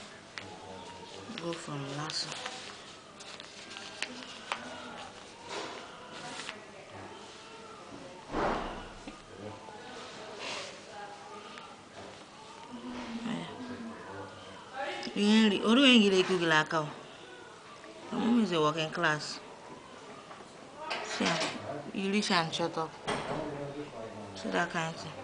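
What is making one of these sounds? A woman talks softly close by.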